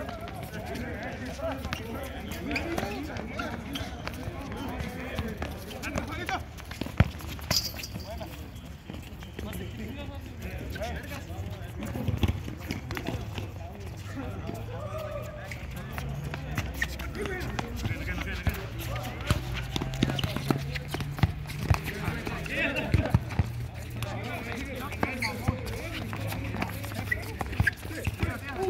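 A ball thuds as players kick it.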